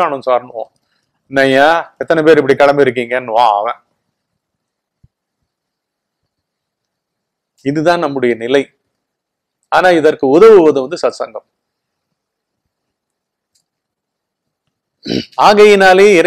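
An older man speaks calmly and slowly into a close microphone, with long pauses.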